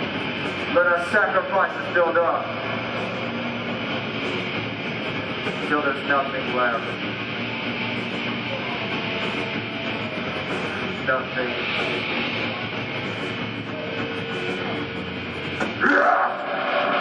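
A man sings and screams into a microphone through loudspeakers.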